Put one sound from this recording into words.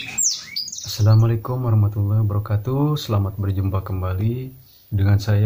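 A man speaks calmly and closely into a microphone.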